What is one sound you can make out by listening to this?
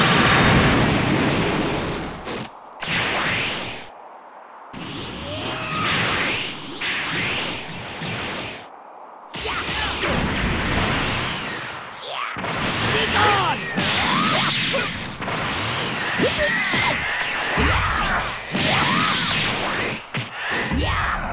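Fighters' punches and kicks land with sharp thuds.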